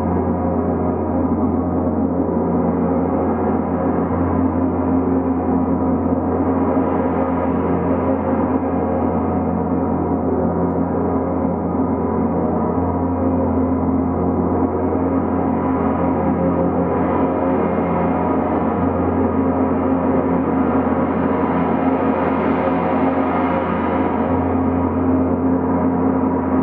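Large gongs shimmer and drone in a dense, sustained wash, swelling and receding.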